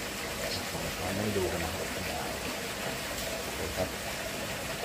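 Water splashes softly close by.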